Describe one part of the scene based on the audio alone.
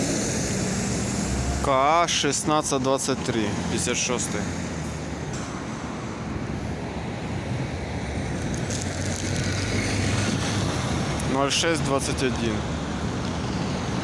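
A bus engine rumbles as the bus pulls up and drives off.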